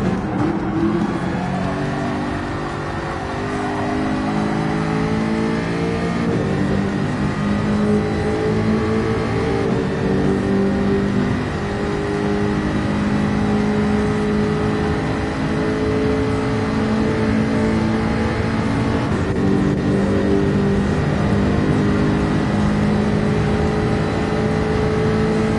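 A racing car engine roars steadily at high speed, shifting up and down through the gears.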